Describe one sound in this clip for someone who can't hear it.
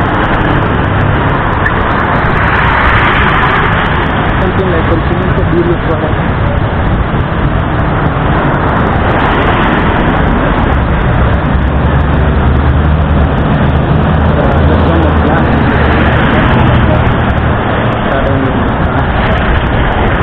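A bus engine idles and drives past close by.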